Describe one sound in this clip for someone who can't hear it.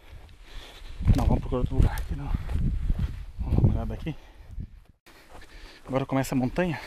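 A man talks with animation close to the microphone, outdoors.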